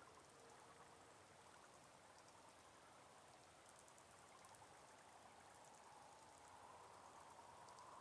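Waterfalls pour and splash steadily.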